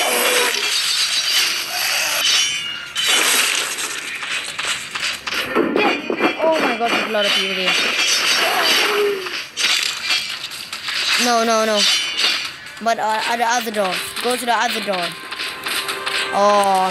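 Blades swish and strike in a fast fight.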